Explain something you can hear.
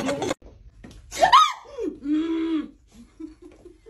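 A woman cries out and laughs nearby.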